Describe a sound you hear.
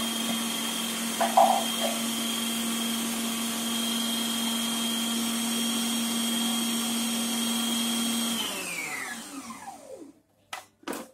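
A food processor motor whirs steadily, then winds down.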